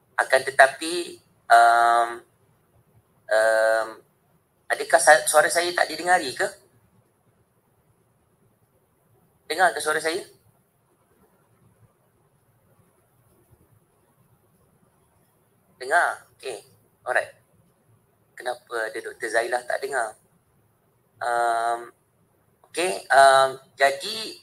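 A man speaks in short bursts, heard through an online call.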